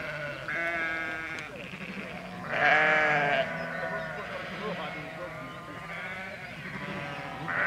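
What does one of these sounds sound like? Sheep bleat repeatedly nearby and in the distance.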